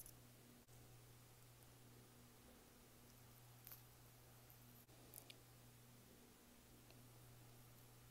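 A knife blade scrapes softly against orange peel.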